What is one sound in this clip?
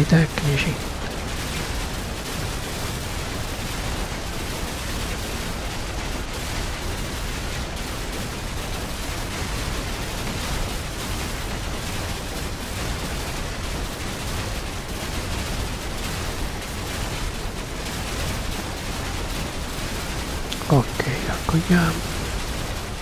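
A man speaks briefly and casually into a microphone.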